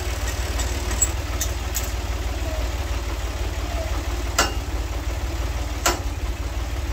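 Metal clanks sharply a few times.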